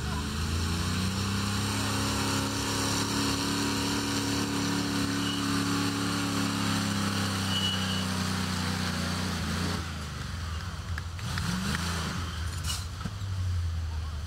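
A truck engine rumbles and revs loudly close by.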